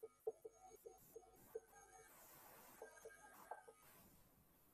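A marker squeaks on a whiteboard in short strokes.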